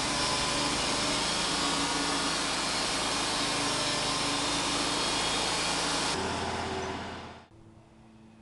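A sawmill blade roars loudly through a log.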